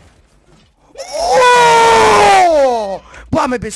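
A young man shouts loudly and excitedly into a close microphone.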